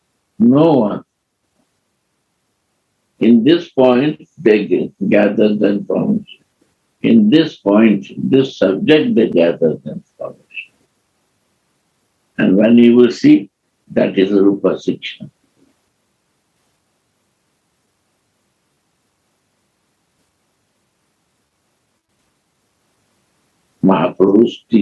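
An elderly man speaks calmly and slowly, in pauses, close to a microphone.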